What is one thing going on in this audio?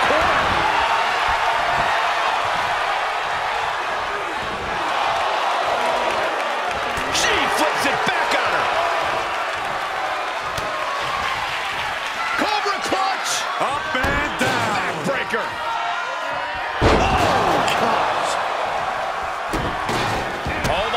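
A large crowd cheers and chants loudly throughout.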